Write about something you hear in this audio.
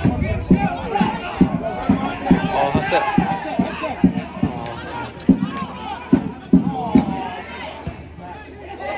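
Football players shout to each other across an open pitch outdoors.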